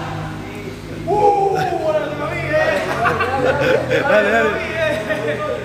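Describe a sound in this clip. Several young men laugh and chatter.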